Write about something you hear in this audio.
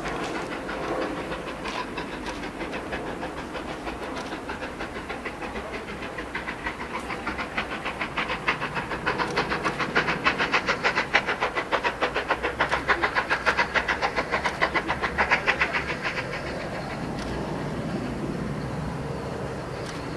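Train wheels rumble and clatter over the rail points.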